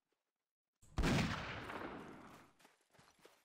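A musket fires with a loud bang that echoes away.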